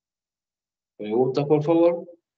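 A man speaks briefly and calmly over an online call.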